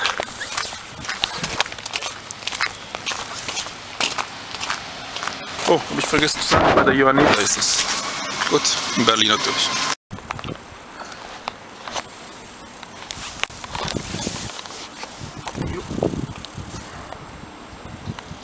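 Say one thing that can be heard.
Footsteps crunch on icy, snowy pavement.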